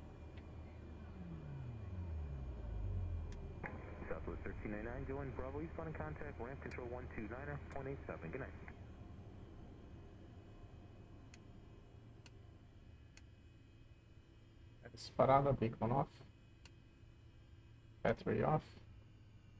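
An aircraft engine hums steadily.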